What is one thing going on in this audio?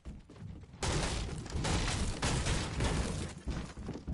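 A pickaxe strikes a wall with sharp knocks.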